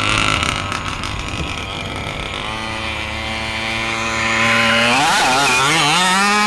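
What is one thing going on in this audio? A large-scale radio-controlled buggy's two-stroke petrol engine revs.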